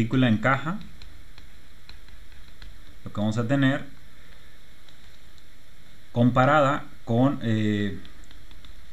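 A man speaks calmly in short, spaced phrases into a close microphone.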